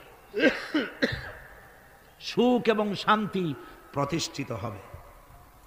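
A man recites in a melodic, chanting voice.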